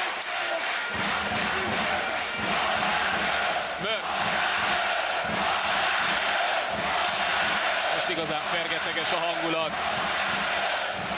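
A ball bounces on a hard floor.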